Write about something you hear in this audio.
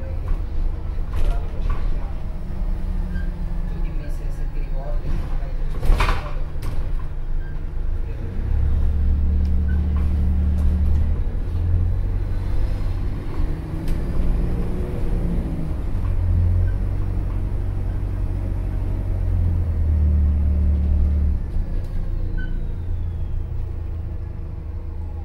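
A bus interior rattles and clatters over the road.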